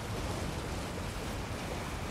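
Water splashes as a horse wades through a stream.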